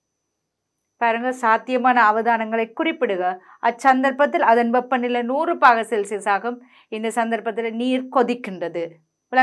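A woman speaks clearly into a close microphone, explaining with animation.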